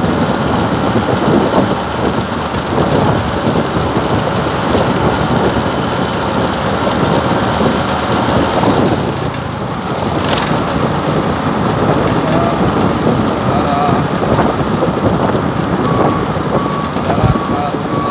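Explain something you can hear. A motorbike engine hums steadily as it rides along a road.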